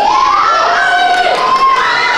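A large audience cheers and screams loudly in an echoing hall.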